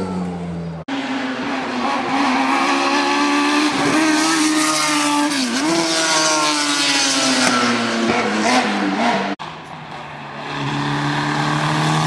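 A racing car engine roars loudly as it passes close by, rising and falling in pitch.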